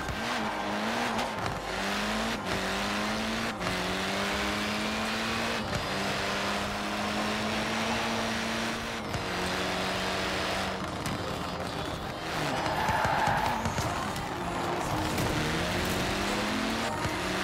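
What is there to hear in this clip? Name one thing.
A rally car engine roars and revs up through the gears.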